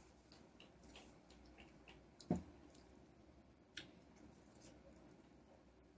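A boy chews and slurps juicy mango close by.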